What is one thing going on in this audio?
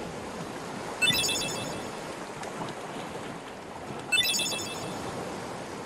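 A bright chime rings twice.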